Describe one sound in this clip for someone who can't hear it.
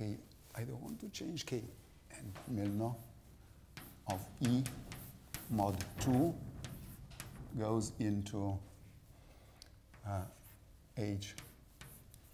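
An elderly man speaks calmly into a microphone, lecturing.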